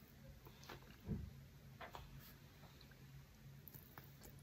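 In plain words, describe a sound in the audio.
A man slurps noodles close to a microphone.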